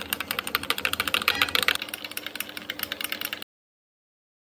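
A spoon clinks rapidly against a ceramic mug while stirring.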